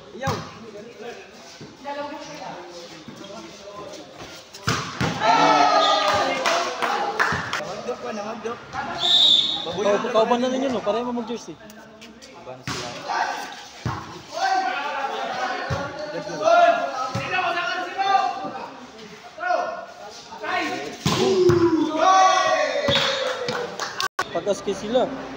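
A crowd of young spectators shouts and cheers loudly under an echoing roof.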